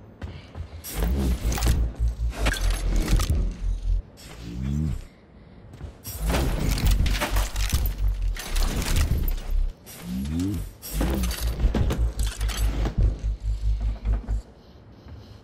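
Metal drawers slide open and rattle.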